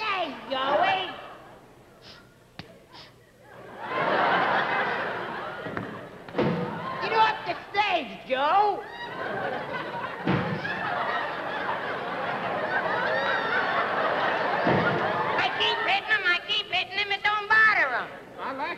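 A man talks animatedly and comically on a stage.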